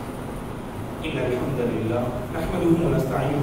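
A man speaks steadily into a microphone in an echoing room.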